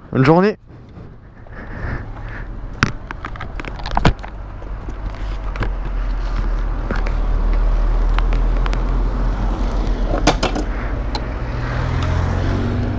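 A motorcycle engine idles and then revs as the bike rides off.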